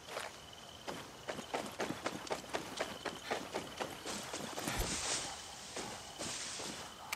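Footsteps run quickly over the ground.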